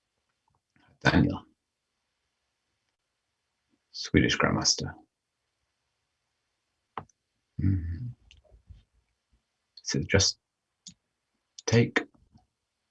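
A man speaks calmly in short bursts into a close microphone.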